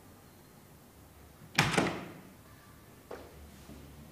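A door handle clicks.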